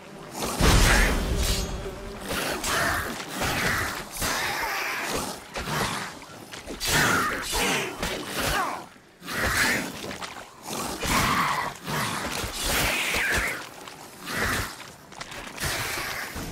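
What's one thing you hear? Monsters screech and snarl.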